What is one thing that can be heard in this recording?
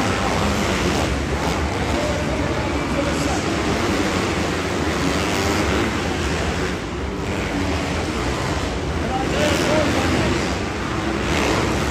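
A dirt bike engine revs and roars loudly in a large echoing hall.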